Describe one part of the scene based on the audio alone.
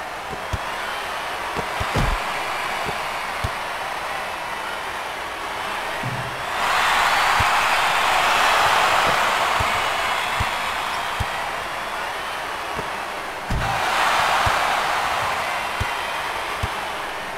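A basketball bounces on a wooden court in quick thumps.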